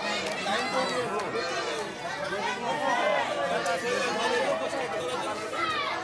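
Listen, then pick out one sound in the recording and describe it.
A small group of adults claps their hands.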